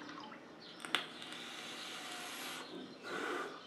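A man draws a long breath through a vape.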